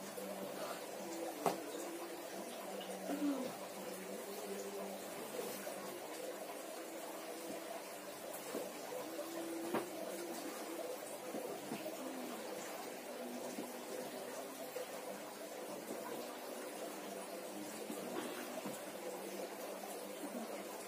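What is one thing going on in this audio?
Hands rub and press on bare skin.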